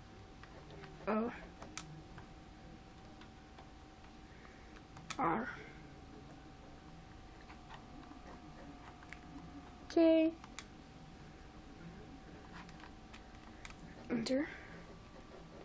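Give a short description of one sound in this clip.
An electronic device gives short rising tones now and then.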